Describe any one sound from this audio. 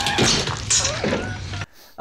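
A young woman sobs and wails.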